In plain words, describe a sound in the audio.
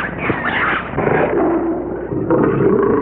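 A lion roars close by.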